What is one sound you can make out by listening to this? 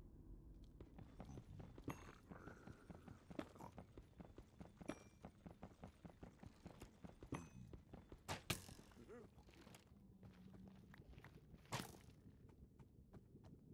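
A pickaxe chips at stone in quick, steady taps.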